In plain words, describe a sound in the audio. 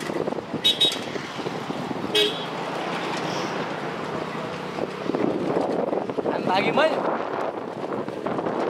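A bicycle rolls and rattles along a dirt path.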